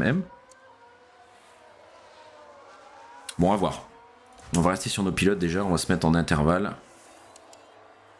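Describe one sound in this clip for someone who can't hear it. Racing car engines whine faintly as the cars speed past.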